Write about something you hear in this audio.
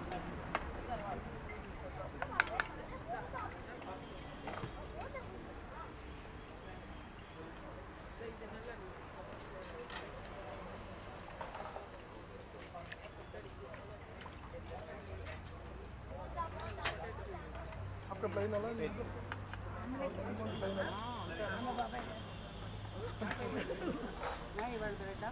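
Metal utensils clink and scrape against a hot griddle.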